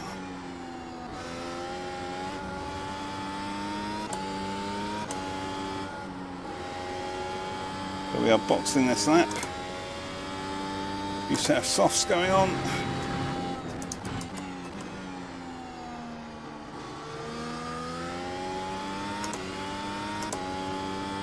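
A racing car engine whines at high revs, rising through the gears and dropping as it shifts down.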